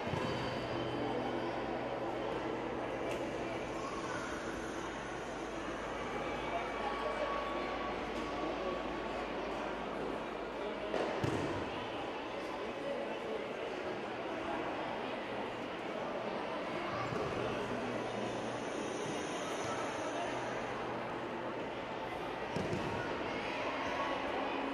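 Bare feet shuffle and pad across a mat.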